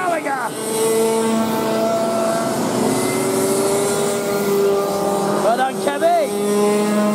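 Go-kart engines whine and buzz as karts race past outdoors.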